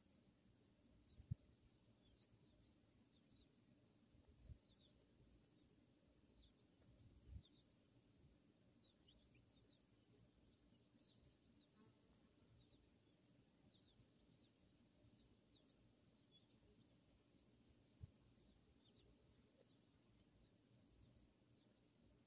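An outdoor machine unit hums steadily outdoors.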